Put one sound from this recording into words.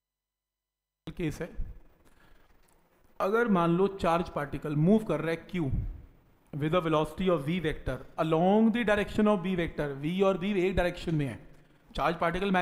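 A man lectures calmly through a headset microphone.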